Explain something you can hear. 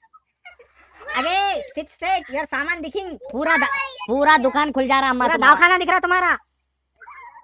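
A young girl talks excitedly through an online call.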